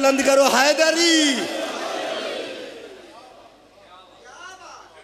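A man chants loudly into a microphone with echo, his voice sustained and falling away.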